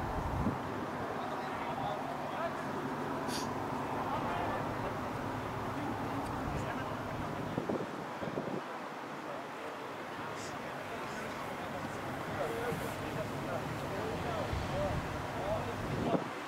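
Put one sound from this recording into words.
Young men call out to each other across an open outdoor field.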